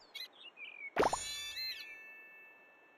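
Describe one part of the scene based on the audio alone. A bright, sparkling game chime rings out and fades.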